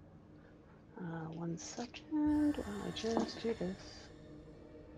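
A woman speaks animatedly over an online call microphone.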